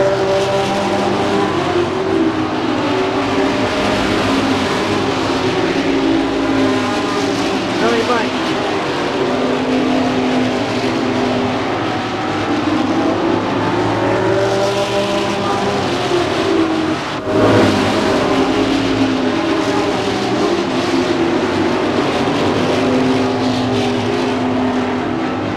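Several race car engines roar loudly as the cars speed around a track.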